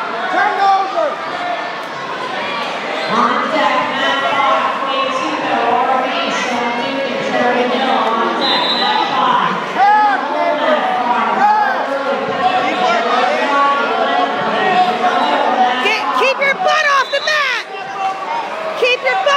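A crowd of spectators cheers and shouts loudly in a large echoing hall.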